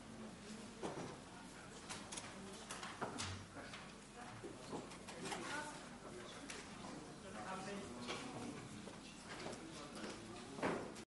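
Several men and women chat quietly at a distance in a large room.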